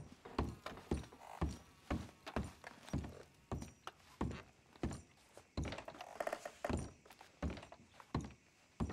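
Boots thud on creaking wooden floorboards in a steady walking rhythm.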